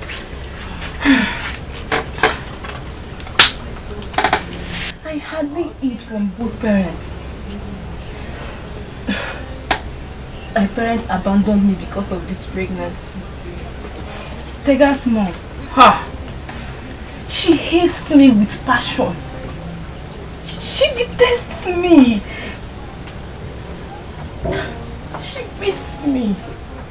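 A young woman speaks quietly and earnestly, close by.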